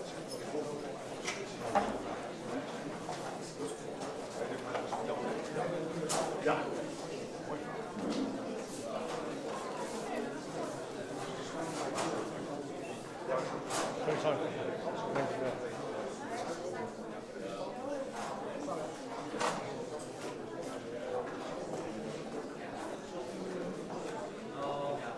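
A crowd of men and women murmurs and chats in a room.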